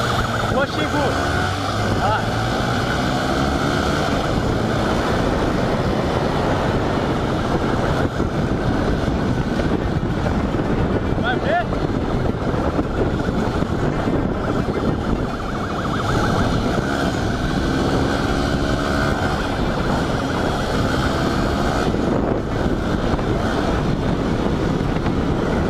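A motorcycle engine revs and pulls.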